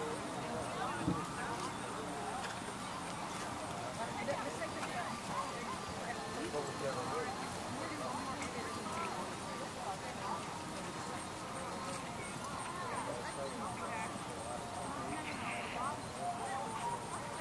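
A horse's hooves thud softly on grass as it trots.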